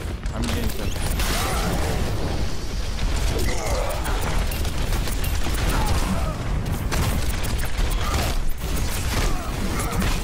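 Loud explosions boom in bursts.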